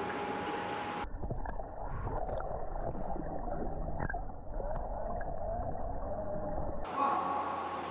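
Bubbles gurgle underwater around a swimming diver.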